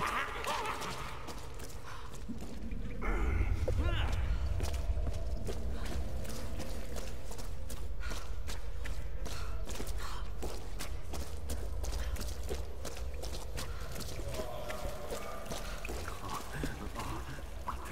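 Footsteps crunch over rubble and stones.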